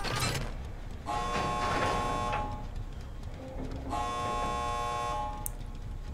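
A machine rattles and whirs as it is worked on.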